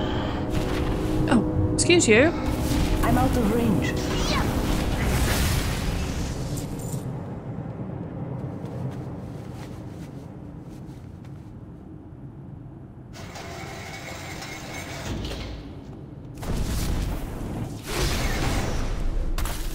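Spell effects crackle and burst during a fight.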